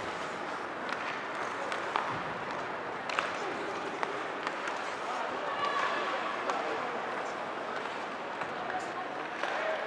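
Skates scrape and hiss across the ice.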